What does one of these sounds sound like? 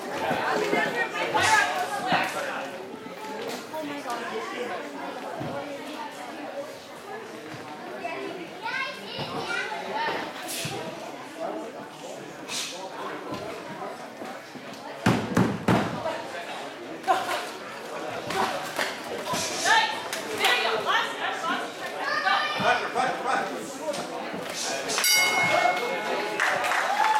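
Spectators shout and call out around the ring.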